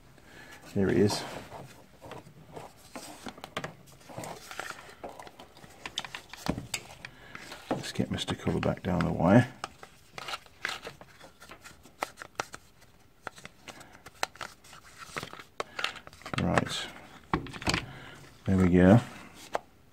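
Plastic parts of a power tool click and rattle as hands handle them up close.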